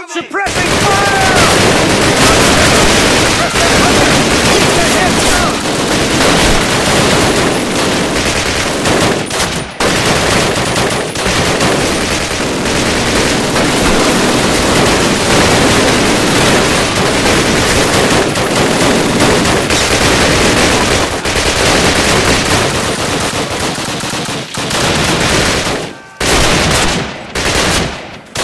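A machine gun fires in long rapid bursts.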